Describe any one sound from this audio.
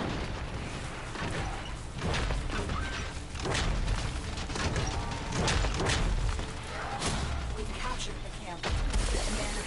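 Rapid gunfire bursts and booms from a video game.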